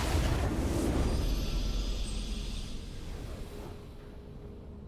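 A triumphant game fanfare swells loudly, then fades away.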